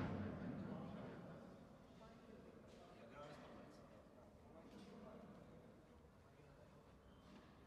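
Footsteps shuffle softly on an indoor court.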